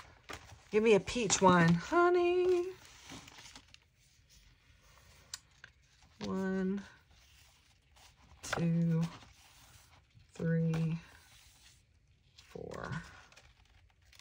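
Paper pages rustle and flip softly as they are handled.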